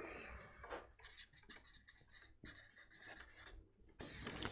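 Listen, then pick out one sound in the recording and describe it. A marker squeaks on paper.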